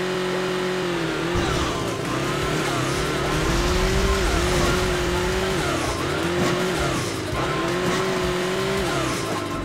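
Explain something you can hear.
A toy-like car engine revs steadily, rising and dipping in pitch.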